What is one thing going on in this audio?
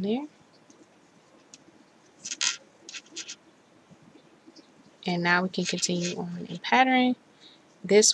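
Yarn rustles softly as a crochet hook pulls it through loops.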